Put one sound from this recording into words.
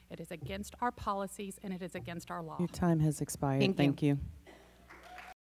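A woman speaks into a microphone with animation.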